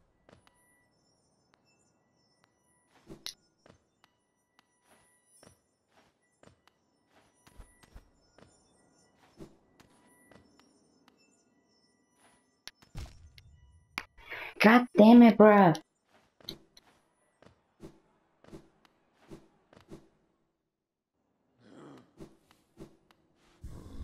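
Light footsteps patter softly and stop now and then.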